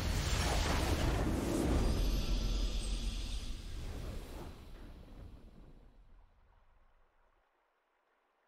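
A triumphant game fanfare swells, then slowly fades to silence.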